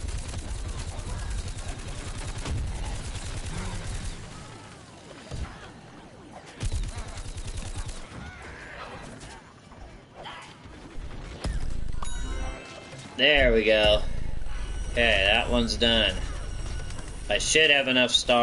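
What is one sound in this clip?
Video game blasts and zaps fire rapidly.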